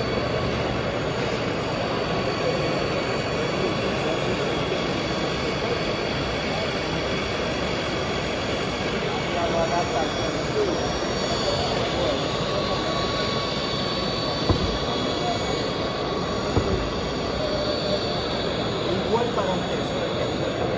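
A crowd chatters steadily in a large, echoing hall.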